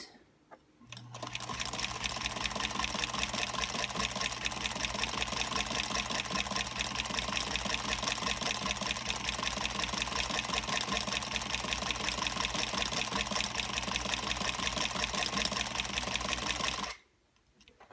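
A sewing machine runs fast and steady, then stops.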